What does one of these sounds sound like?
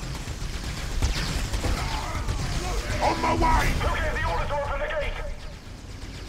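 Weapons fire and clash in a noisy battle.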